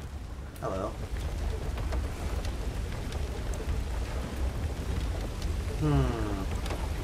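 Water gushes and splashes steadily from a turning wheel.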